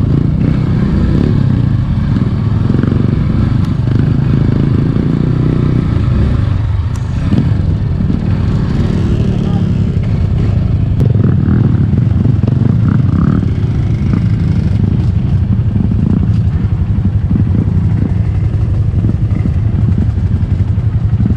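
A dirt bike engine rumbles up close at low speed.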